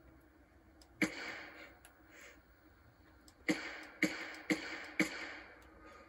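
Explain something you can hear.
A shotgun fires several loud, booming shots that echo outdoors.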